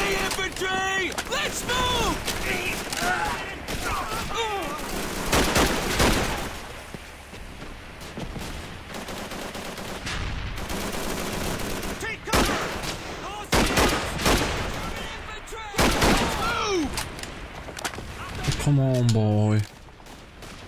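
A rifle bolt clicks and clacks as it is reloaded.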